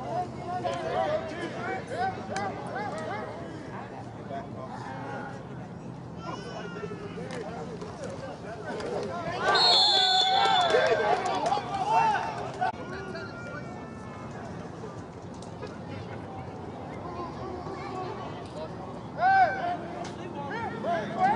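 Men shout and call out nearby outdoors.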